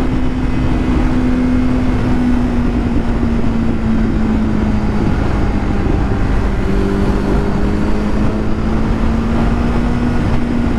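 Traffic roars by on a highway.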